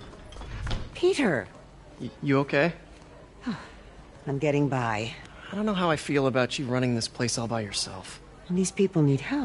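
A middle-aged woman speaks warmly and animatedly.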